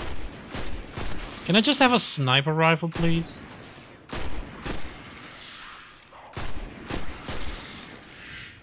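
A rifle fires single shots.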